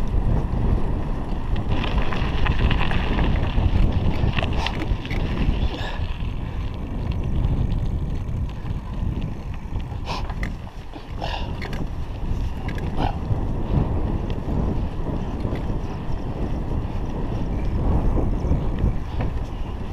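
Wind rushes past a microphone on a moving bicycle.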